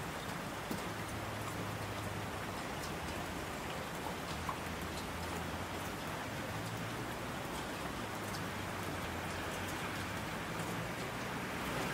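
Thunder rumbles in the distance.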